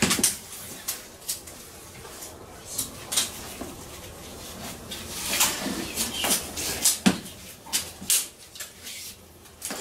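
A cable rustles and scrapes as a man handles it.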